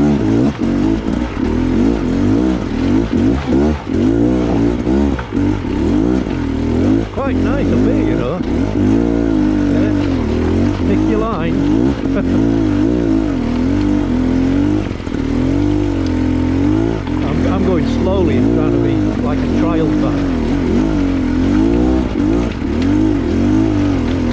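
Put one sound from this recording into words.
Tyres crunch and rattle over loose rocks.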